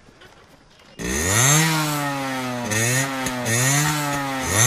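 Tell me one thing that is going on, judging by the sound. A motorcycle engine starts up and revs loudly, rising and falling in pitch.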